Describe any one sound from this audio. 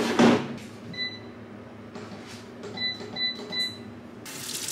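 An electronic appliance beeps several times.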